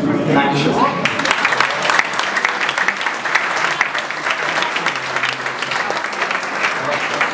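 An audience claps along.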